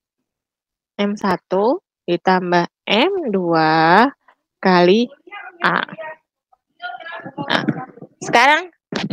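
A young woman speaks calmly, heard through an online call.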